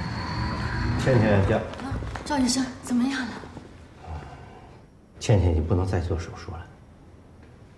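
A middle-aged woman speaks anxiously nearby.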